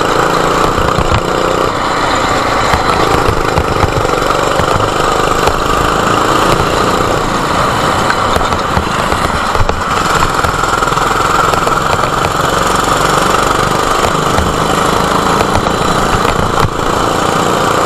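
A go-kart engine buzzes loudly up close, revving up and down.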